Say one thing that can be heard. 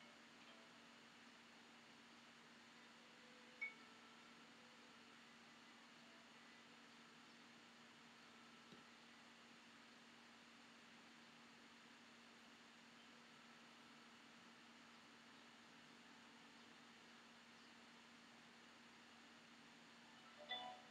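A brush swishes softly across paper.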